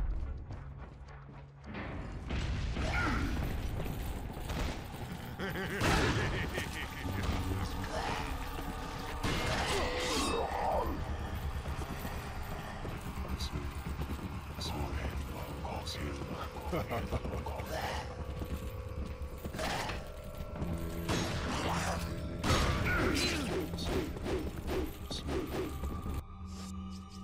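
Footsteps thud on the floor.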